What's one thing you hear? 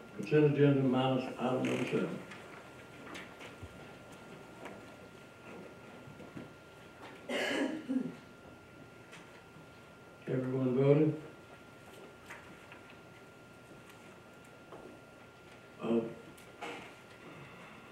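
A man speaks in short bursts through a microphone in a large room.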